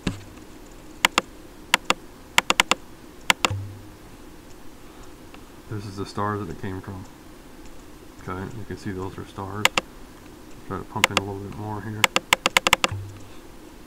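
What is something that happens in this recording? A computer mouse clicks sharply, several times in quick bursts.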